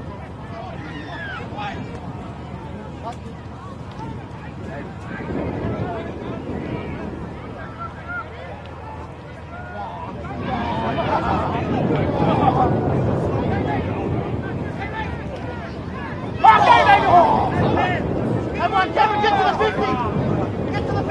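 A crowd of spectators cheers and shouts outdoors, growing louder as play goes on.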